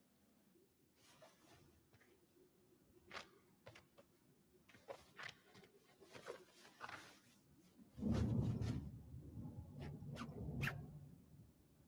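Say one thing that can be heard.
Soft knocks and rustles sound as a person moves about close by.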